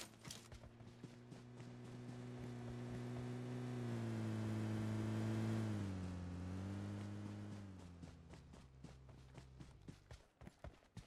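A vehicle engine hums, rises, then fades away.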